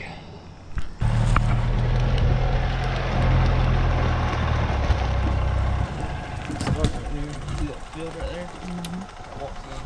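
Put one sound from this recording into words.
A utility vehicle engine rumbles steadily.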